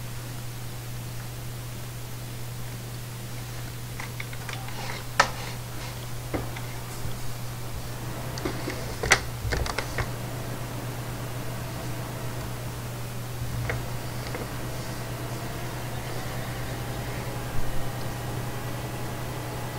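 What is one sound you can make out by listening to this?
A heavy truck engine rumbles steadily.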